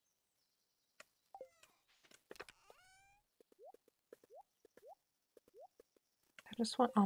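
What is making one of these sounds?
Short electronic blips and rising chirps sound in quick succession.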